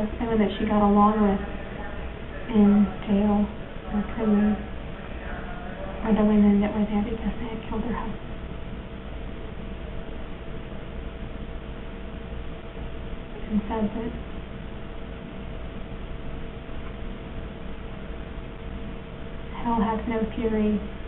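A young woman speaks calmly nearby, in short phrases with pauses.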